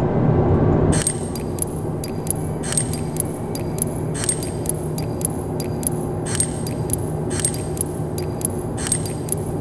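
Metal dials of a combination lock click and ratchet as they turn.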